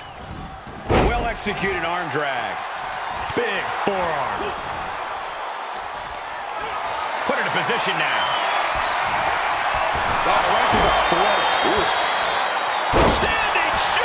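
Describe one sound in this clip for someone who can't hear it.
Heavy thuds sound as a wrestler slams onto the ring mat.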